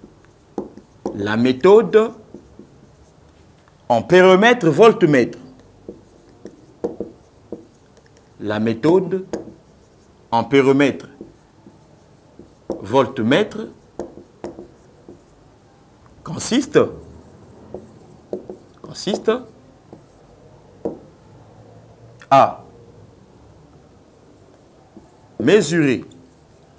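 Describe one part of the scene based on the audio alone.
A man speaks in short, calm phrases with pauses, close by.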